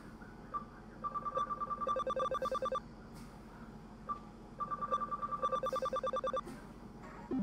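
Rapid electronic beeps tick in quick succession.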